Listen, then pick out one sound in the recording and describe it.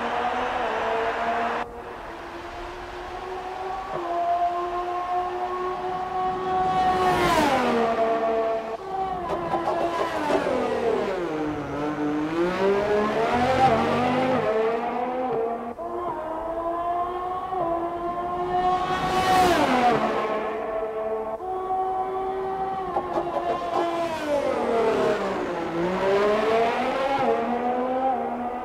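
A racing car engine screams at high revs, shifting gears and rising and falling in pitch as it passes by.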